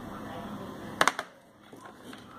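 A disc case snaps open.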